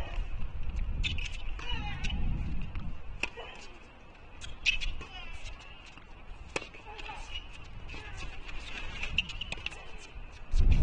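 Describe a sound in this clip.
Tennis shoes squeak on a hard court.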